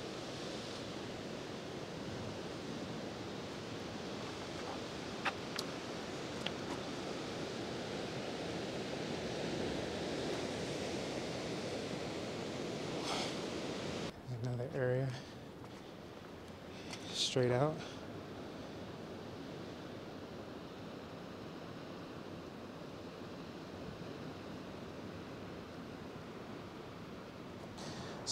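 Waves crash and surge against rocks below, outdoors in wind.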